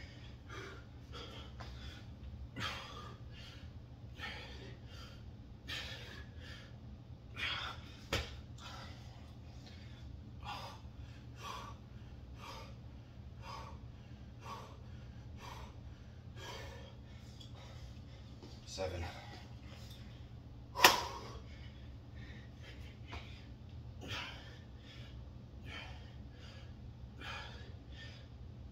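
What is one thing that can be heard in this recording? A man breathes hard in short, rhythmic bursts.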